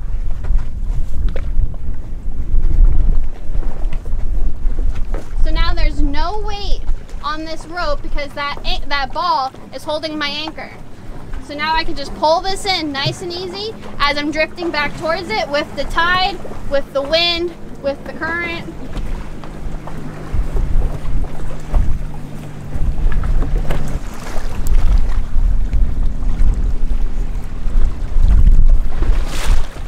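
Waves slap against a boat's hull.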